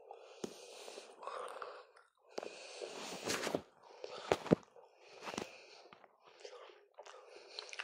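A young woman talks quietly close to a microphone.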